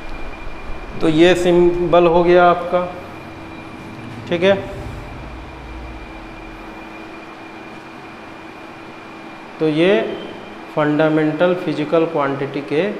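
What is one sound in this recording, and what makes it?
A man speaks loudly and clearly nearby, in short bursts with pauses.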